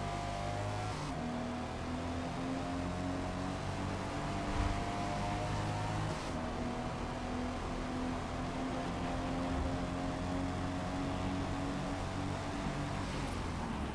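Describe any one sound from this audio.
A car engine roars steadily, shifting up through the gears.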